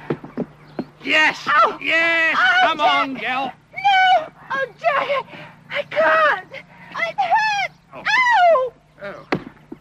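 A woman cries out and moans loudly up close.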